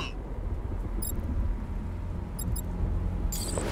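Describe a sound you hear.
Short electronic beeps sound from a menu.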